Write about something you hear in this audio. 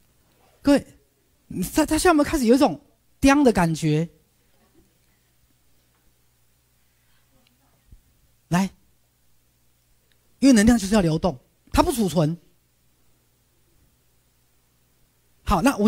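A man speaks with animation through a microphone, in short bursts with pauses.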